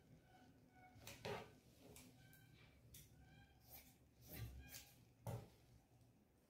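Scissors snip through fabric.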